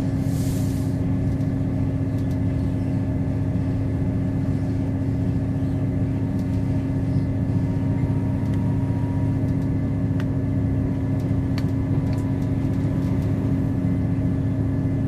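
A bus engine drones steadily with a low hum.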